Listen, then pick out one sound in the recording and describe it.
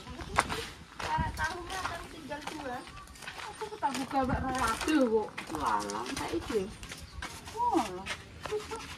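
Two women chat nearby.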